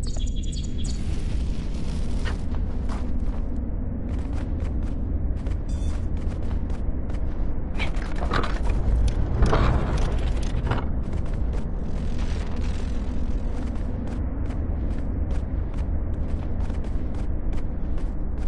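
Light footsteps patter quickly on stone.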